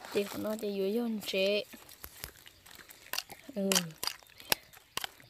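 A metal spoon clinks against a plastic bowl while stirring wet salad.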